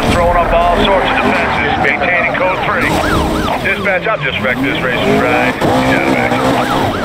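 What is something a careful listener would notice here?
A siren wails in rising and falling sweeps.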